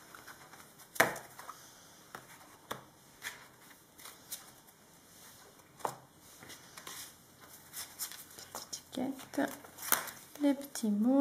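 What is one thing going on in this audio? Cards tap and shuffle on a table.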